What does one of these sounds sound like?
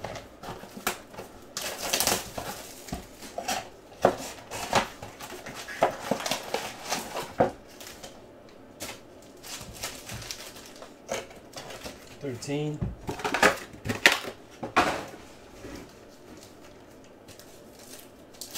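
Foil packs crinkle and rustle in hands.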